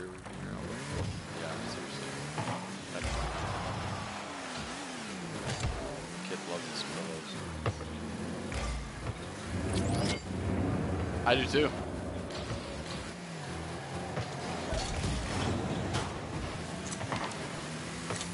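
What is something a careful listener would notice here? A sports car engine revs and roars, rising and falling in pitch.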